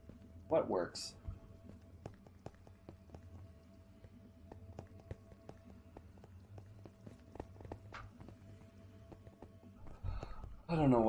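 Short game sound effects click and tap repeatedly.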